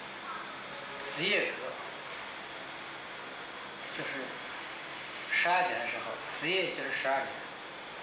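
A middle-aged man speaks calmly and close by, in short phrases.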